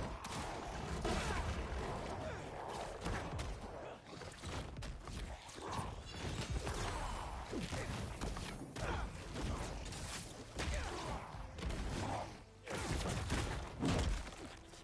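Heavy blows thud and crash in a fierce fight.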